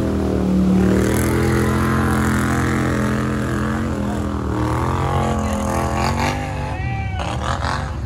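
A quad bike engine revs hard up close.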